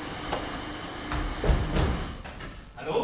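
A man jumps down and lands with a heavy thump on a wooden stage.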